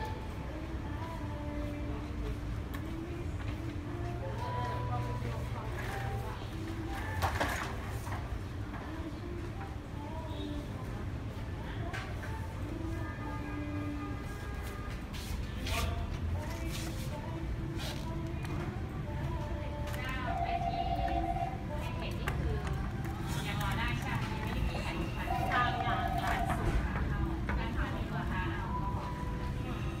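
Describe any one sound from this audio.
A toy plays short electronic beeping tunes.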